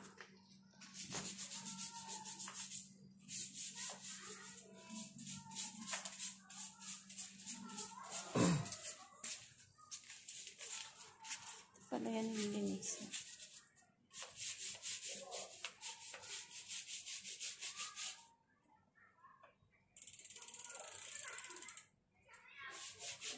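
A brush scrubs rapidly against a bicycle chain.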